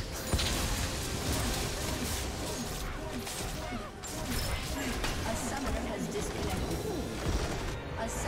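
Game spell effects crackle and clash in a busy fight.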